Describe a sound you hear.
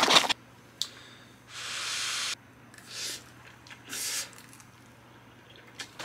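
A young man slurps noodles.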